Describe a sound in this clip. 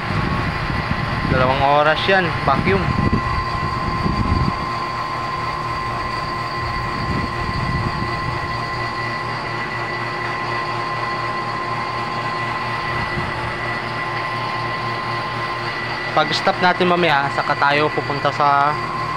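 A vacuum pump hums steadily nearby.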